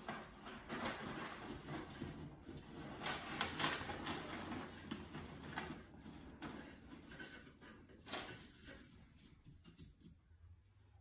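Plastic balls rattle and tumble inside a spinning drum.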